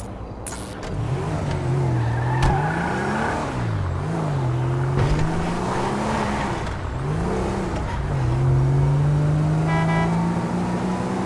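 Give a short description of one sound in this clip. A car engine revs up and down as the car drives off.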